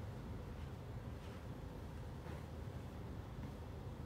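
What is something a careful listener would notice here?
Feet shuffle softly on a rug.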